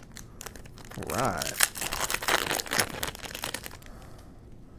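A foil wrapper crinkles.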